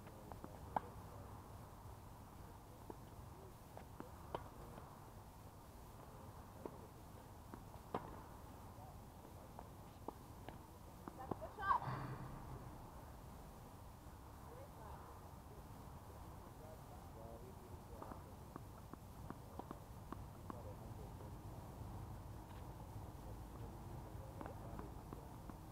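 A tennis ball is struck with a racket, with sharp pops.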